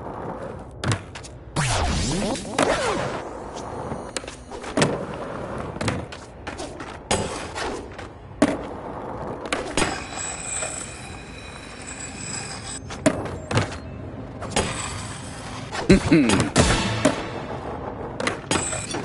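Skateboard wheels roll on hard ground, with sharp clacks on landings.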